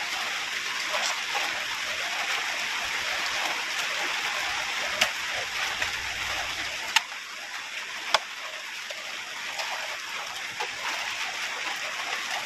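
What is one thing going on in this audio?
A shovel scrapes and digs into wet soil.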